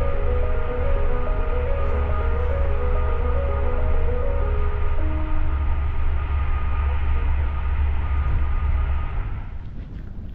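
A train rumbles along steadily with a low hum.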